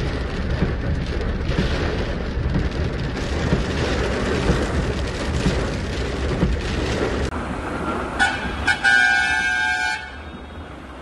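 Heavy rain drums on a car windscreen.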